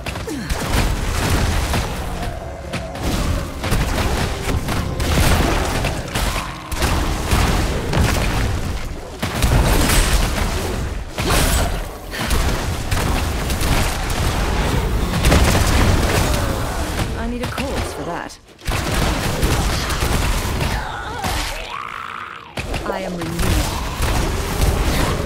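Video game combat effects clash and crackle with heavy booming impacts.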